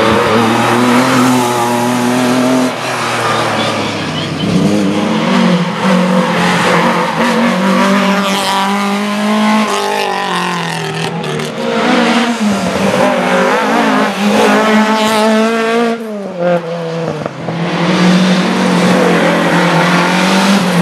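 A historic rally car engine revs hard as the car speeds past on asphalt.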